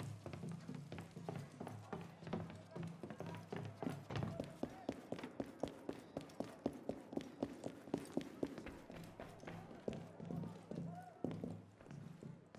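Quick footsteps thud on wooden stairs and stone floors.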